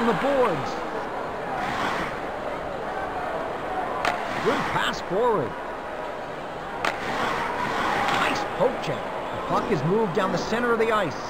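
A crowd cheers in a large arena.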